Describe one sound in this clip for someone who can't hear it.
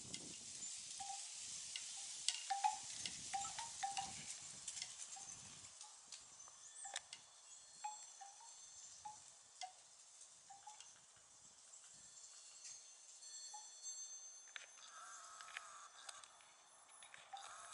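Wild turkeys give short, soft clucks again and again.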